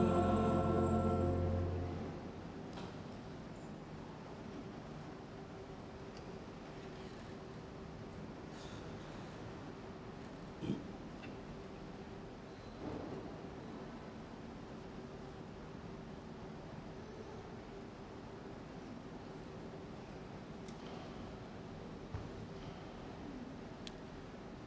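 Paper pages rustle softly.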